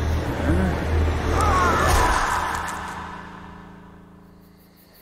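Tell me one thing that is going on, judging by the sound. A creature lets out a loud, wavering shriek that fades away.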